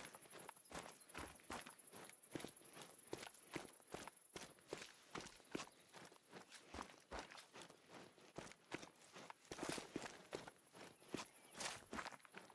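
Footsteps rustle through dry grass and brush at a steady walking pace.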